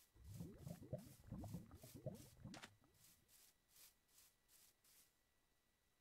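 Footsteps crunch over grass.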